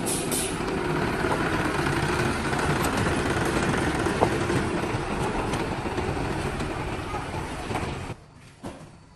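Tyres crunch on gravel.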